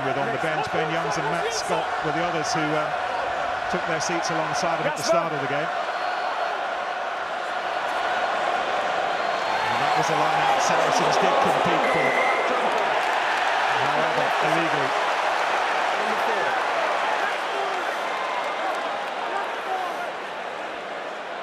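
A large stadium crowd cheers and murmurs outdoors.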